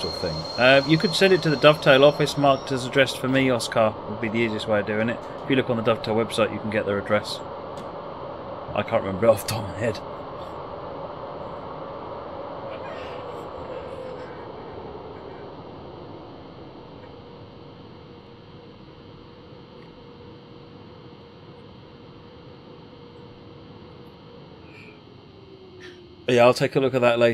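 A train engine hums steadily and slowly fades.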